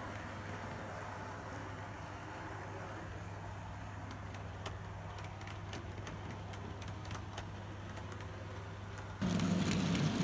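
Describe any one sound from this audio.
A small model train hums along its track in the distance.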